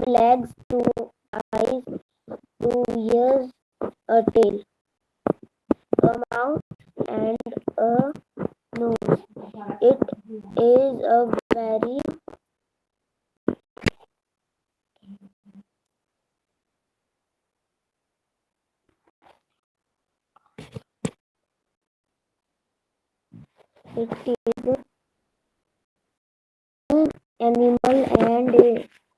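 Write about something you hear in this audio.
A boy speaks calmly over an online call.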